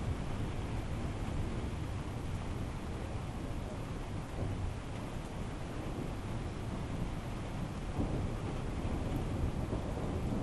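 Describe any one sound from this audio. Wind blows steadily outdoors and buffets the microphone.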